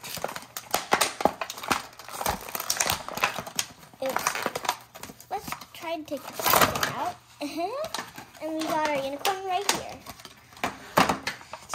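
Plastic packaging crinkles and rustles close by.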